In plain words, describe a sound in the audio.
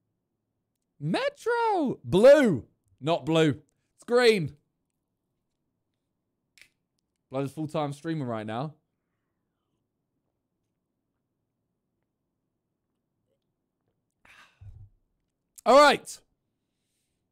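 A young man speaks casually into a close microphone.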